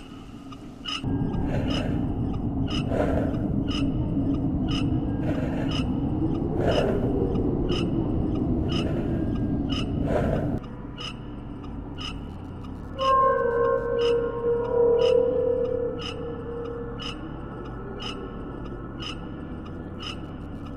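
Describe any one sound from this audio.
Footsteps thud steadily along an echoing tunnel.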